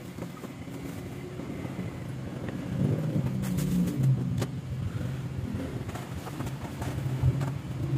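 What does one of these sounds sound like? Plastic bags rustle and crinkle as they are handled close by.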